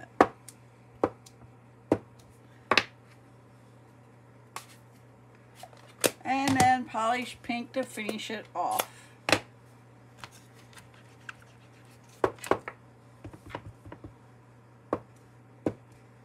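A stamp presses down onto paper with a soft knock.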